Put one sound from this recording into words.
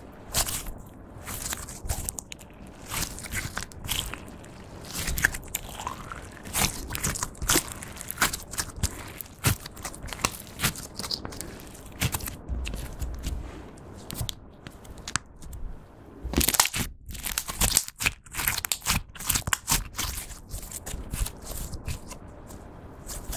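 Sticky slime squelches and crackles as hands stretch and squeeze it.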